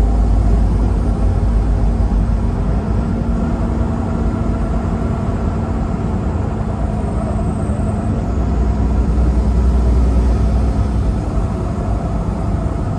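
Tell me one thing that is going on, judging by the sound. A vehicle's engine hums steadily as it drives along a highway.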